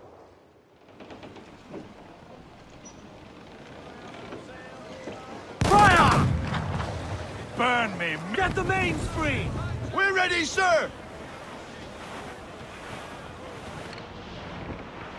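Sea waves wash and roll against a wooden ship.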